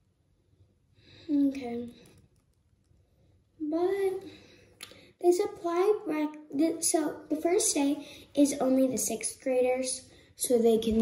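A young girl speaks with animation close to a microphone.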